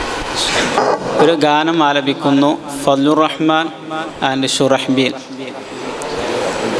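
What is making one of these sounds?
A man speaks into a microphone over a loudspeaker in an echoing hall.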